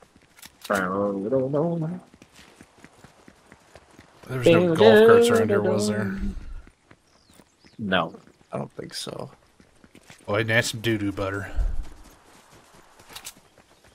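Footsteps run quickly over a path and grass.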